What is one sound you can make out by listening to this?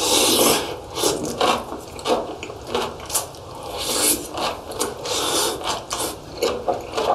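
A young man chews food wetly and noisily, close to the microphone.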